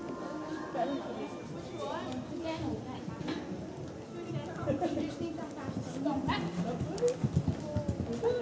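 A horse's hooves thud on soft sand.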